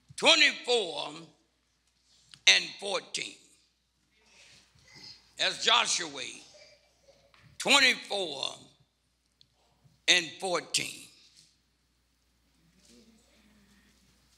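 A man speaks through a microphone in short, lively phrases.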